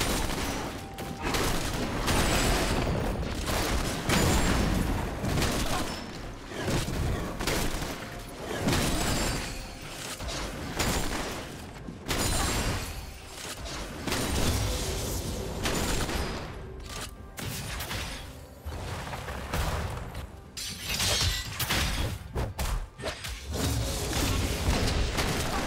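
Fantasy battle sound effects crackle and clash as characters fight.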